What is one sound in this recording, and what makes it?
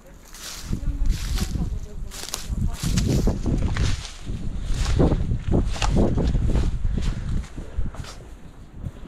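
Footsteps crunch through dry leaves.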